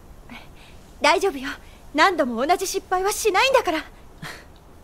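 A young woman speaks calmly and cheerfully.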